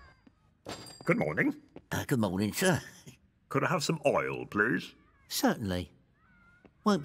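An elderly man speaks.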